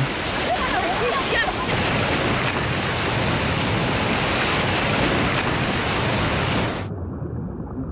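Waves splash and wash around swimmers in the sea.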